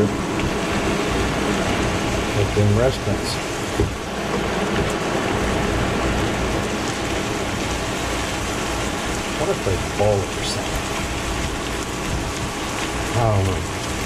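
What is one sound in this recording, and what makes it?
A spatula scrapes and stirs in a frying pan.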